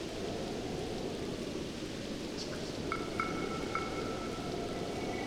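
A torch flame crackles steadily.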